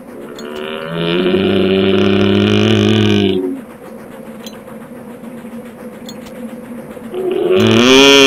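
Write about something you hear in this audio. A dynamite fuse hisses and sputters.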